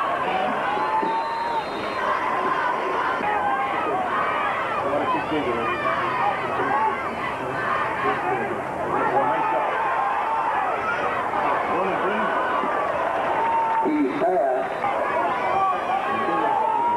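A large crowd of spectators murmurs and calls out in an outdoor stadium.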